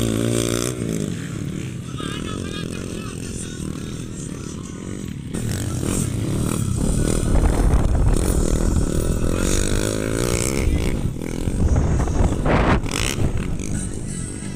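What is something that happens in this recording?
A dirt bike engine revs and whines nearby.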